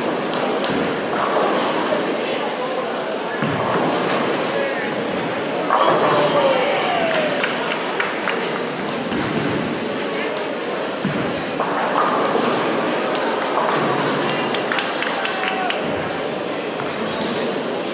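Bowling balls rumble down lanes and crash into pins, echoing through a large hall.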